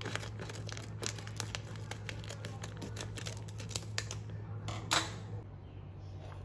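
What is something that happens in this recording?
Scissors snip through a crinkly plastic packet.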